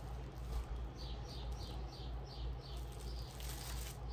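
Plastic bags crinkle and rustle.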